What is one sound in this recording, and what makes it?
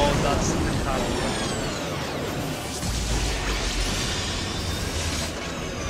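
Magical spell effects whoosh and shimmer in a video game.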